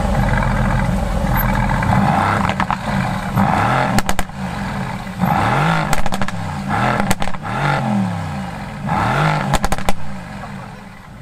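A sports car engine revs loudly in short bursts.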